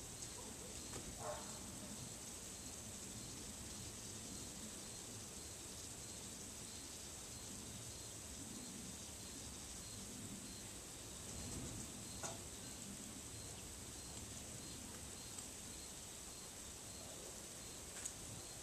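Metal wind chimes ring softly now and then.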